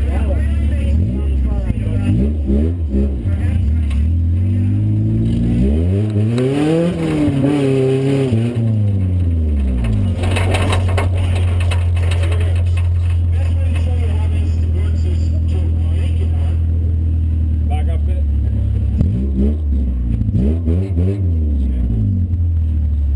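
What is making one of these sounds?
A car engine revs up and down in bursts.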